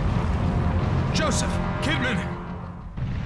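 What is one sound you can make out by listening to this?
A man shouts out anxiously, calling.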